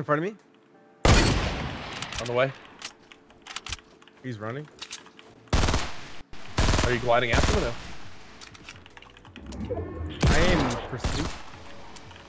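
Gunshots crack loudly in quick bursts.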